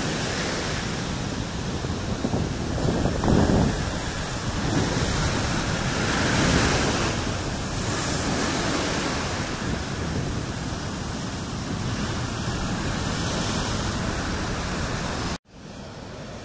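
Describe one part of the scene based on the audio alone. Waves crash and churn loudly close by.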